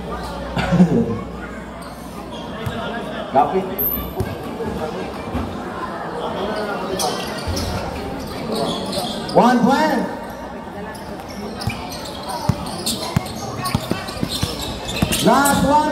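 A crowd of spectators chatters and shouts nearby.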